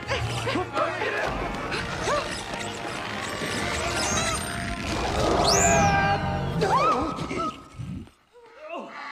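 People crash and tumble loudly through swinging doors.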